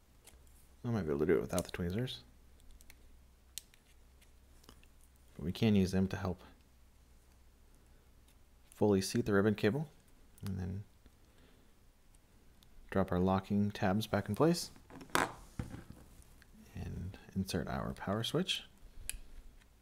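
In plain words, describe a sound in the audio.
Metal tweezers tap and click softly against a small plastic device.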